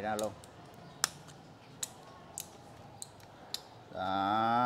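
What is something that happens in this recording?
A small plastic part clicks as a hand handles it.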